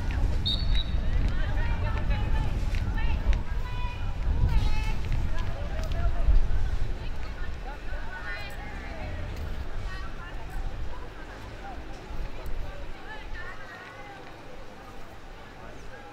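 Young players shout to each other in the distance.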